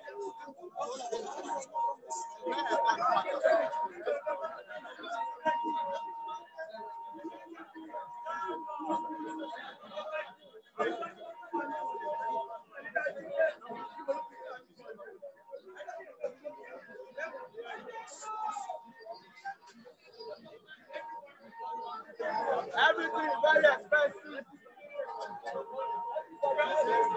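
A crowd of young men chants and shouts outdoors.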